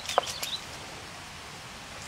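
Fingers peel papery onion skins with a soft crackle.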